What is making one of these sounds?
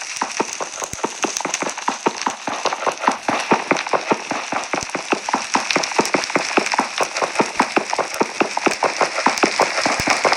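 Rapid tapping knocks sound as blocks are struck over and over.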